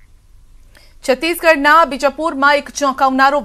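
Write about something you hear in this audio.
A woman reads out the news calmly and clearly through a microphone.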